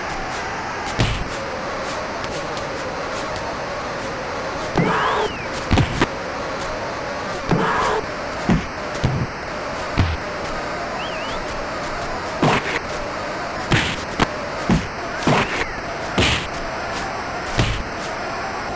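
Punches land with sharp, heavy thuds.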